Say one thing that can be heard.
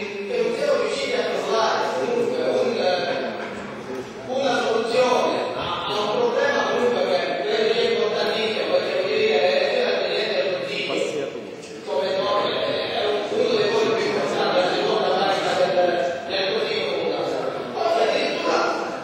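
An elderly man speaks loudly and forcefully through a microphone in a large echoing hall.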